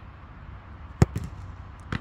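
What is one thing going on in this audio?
A football is kicked hard.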